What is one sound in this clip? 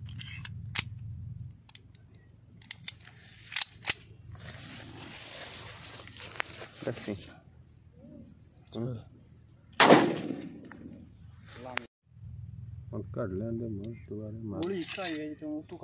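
Metal parts of a pistol click as it is handled.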